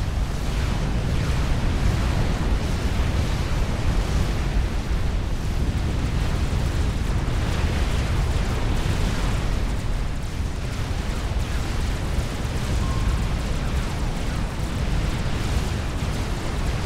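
Explosions and laser fire rumble and crackle constantly in a battle.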